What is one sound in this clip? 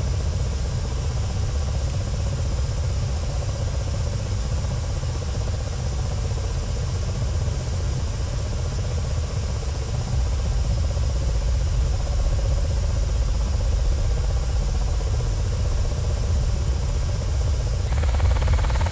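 A helicopter's engine whines steadily.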